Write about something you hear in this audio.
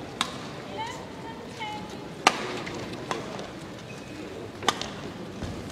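Badminton rackets sharply smack a shuttlecock back and forth.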